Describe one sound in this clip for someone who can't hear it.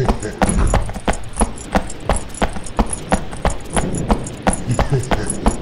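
Footsteps tread quickly and evenly on a hard floor.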